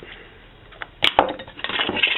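A knife knocks lightly as it is picked up.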